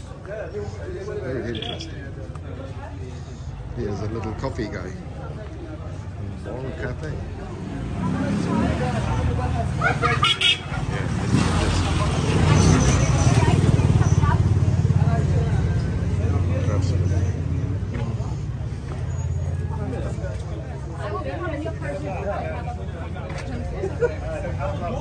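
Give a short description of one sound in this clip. Voices of passers-by chatter nearby outdoors.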